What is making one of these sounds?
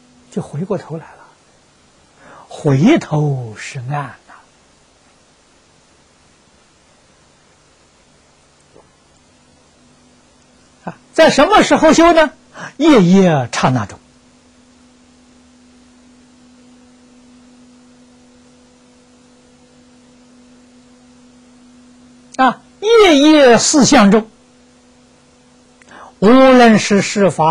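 An elderly man speaks calmly and clearly into a close microphone, in short phrases with long pauses.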